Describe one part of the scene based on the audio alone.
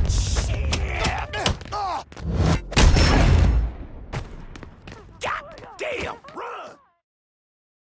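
A man grunts and shouts with effort.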